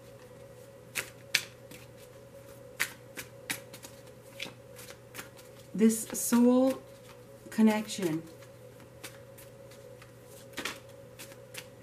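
Cards tap and rustle as they are handled close by.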